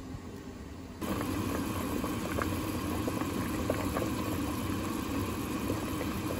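Broth simmers and bubbles in a pot.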